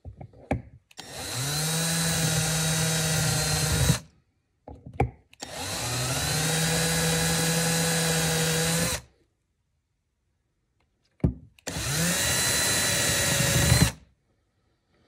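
A cordless drill whirs in short, steady bursts.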